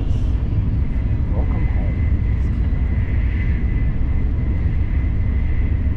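A train's motor whines with a steady high hum.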